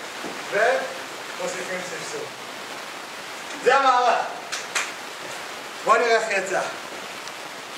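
A man speaks loudly and with animation, close by.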